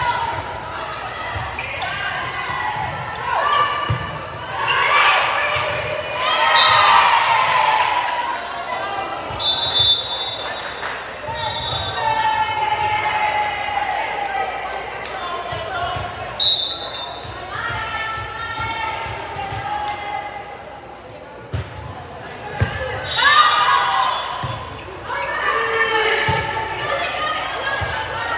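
Young women and girls chatter and call out across a large echoing gym.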